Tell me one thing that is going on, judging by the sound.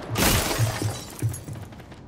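Wooden boards smash and splinter.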